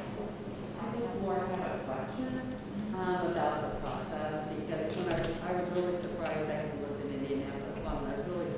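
An elderly woman speaks with animation in a large room.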